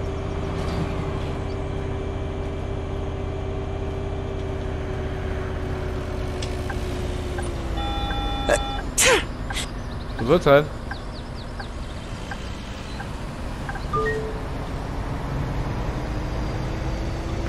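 A bus engine hums steadily, its pitch falling and rising with speed.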